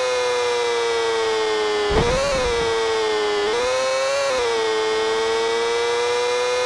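A motorcycle engine drones steadily, its pitch rising and dipping slightly as it speeds up.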